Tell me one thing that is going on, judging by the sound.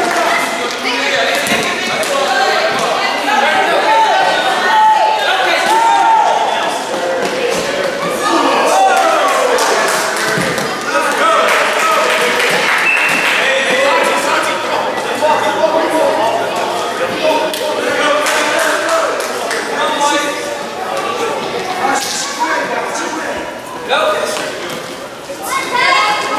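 Children shout and call out across a large echoing gym.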